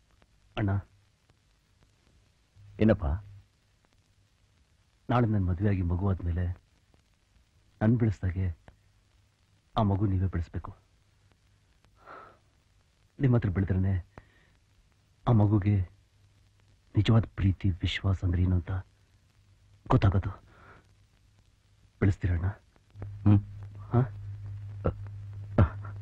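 A middle-aged man speaks emotionally, close by.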